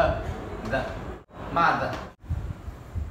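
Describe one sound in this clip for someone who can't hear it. A man speaks, explaining.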